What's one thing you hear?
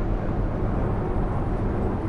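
A truck passes close by.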